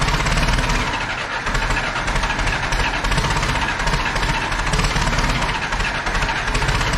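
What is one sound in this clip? A small engine runs loudly with a fast, rough chugging in an echoing room.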